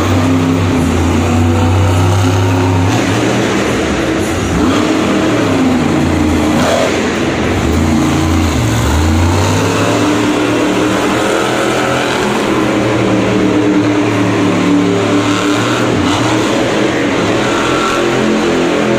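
Big tyres spin and scrape on dirt.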